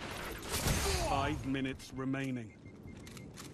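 Game bonus chimes sound in a quick rising run.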